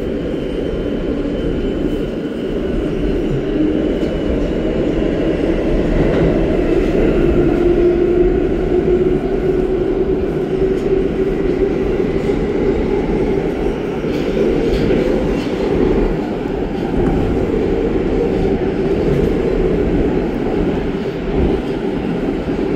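A subway train rumbles steadily through a tunnel.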